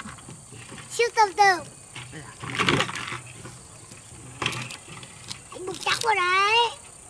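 A young boy calls out in a high voice nearby.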